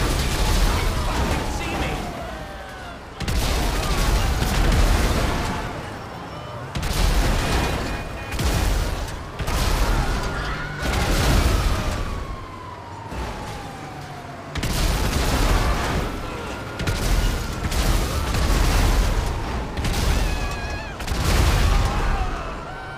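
Car engines roar as vehicles speed in.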